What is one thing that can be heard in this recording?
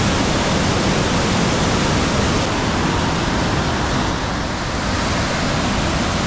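Rushing water roars and churns loudly below a weir.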